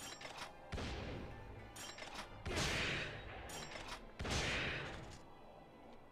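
Heavy magical blasts burst with deep booming whooshes.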